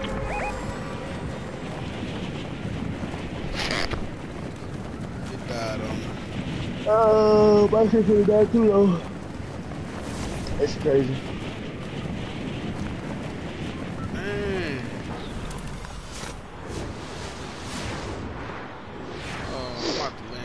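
Wind rushes steadily during a skydive.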